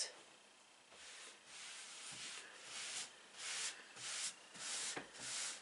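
Hands rub and smooth fabric with soft swishing strokes.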